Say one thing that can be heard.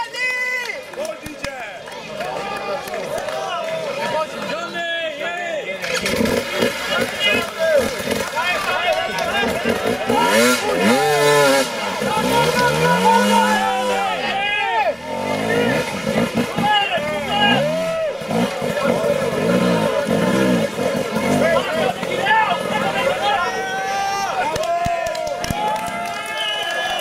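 A crowd of spectators shouts and cheers close by.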